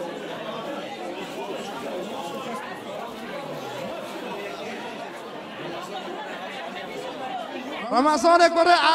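A crowd of men chatters in the background.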